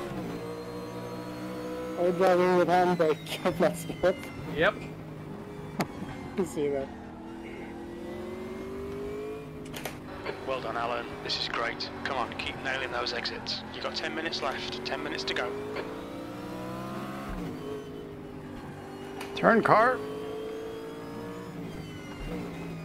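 A race car engine drones steadily, rising and falling in pitch as it shifts gears.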